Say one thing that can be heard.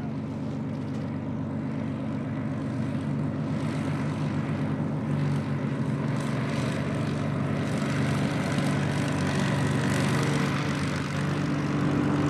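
A propeller plane's piston engine rumbles loudly close by as the plane taxis past.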